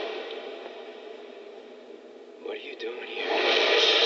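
A young man speaks in a hushed, nervous voice.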